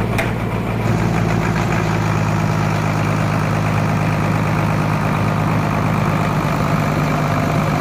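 A large sawmill machine hums and rumbles steadily in a big echoing shed.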